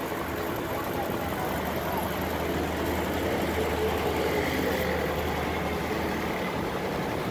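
A motor rickshaw engine putters past.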